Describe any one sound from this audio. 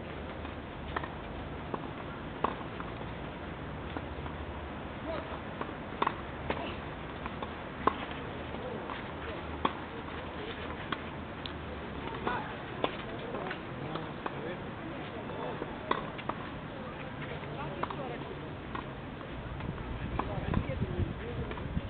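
Tennis balls are struck with rackets, in sharp pops now and then.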